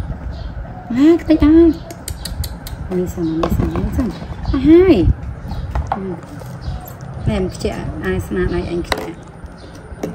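A young woman talks softly and playfully close by.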